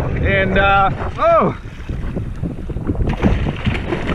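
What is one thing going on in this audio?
A fish thrashes and splashes at the water's surface.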